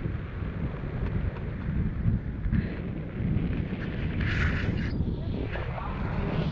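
Strong wind roars and buffets past, outdoors.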